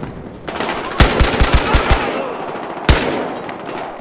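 A rifle fires several quick, loud shots.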